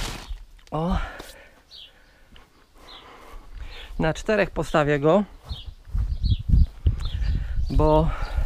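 A man speaks close by in short bursts.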